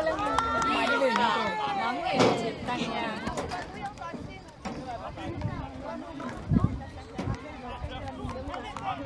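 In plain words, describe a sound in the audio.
Children shout and call out nearby outdoors.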